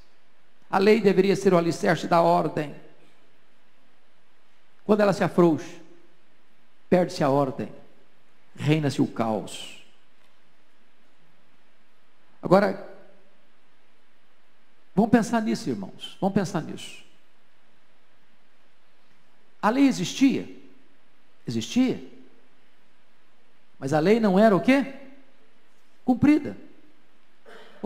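A middle-aged man speaks slowly and solemnly into a microphone, in short phrases with pauses.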